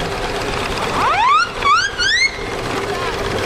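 A steam whistle toots in short rising blasts.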